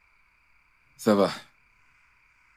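A man gives a short, animated exclamation close by.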